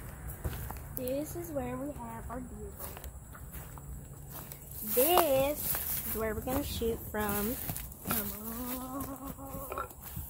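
A young boy talks with animation close by.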